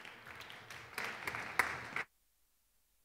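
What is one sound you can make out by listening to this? Footsteps thud on a hollow wooden stage in a large echoing hall.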